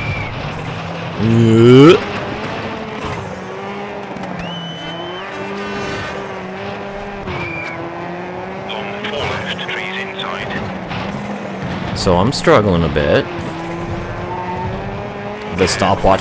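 A rally car engine roars steadily at high revs.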